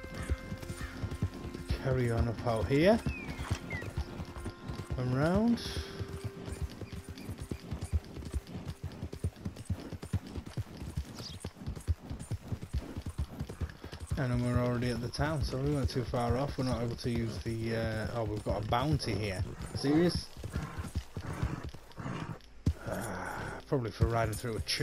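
A horse gallops with rapid, steady hoofbeats.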